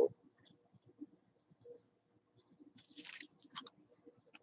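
Trading cards rustle and slide between fingers.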